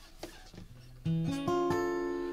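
A guitar strums through an online call.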